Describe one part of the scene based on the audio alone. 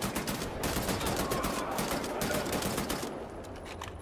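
Automatic gunfire rattles rapidly in an echoing space.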